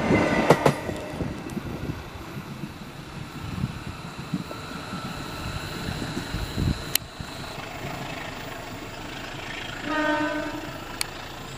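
A train rumbles away along the track and fades into the distance.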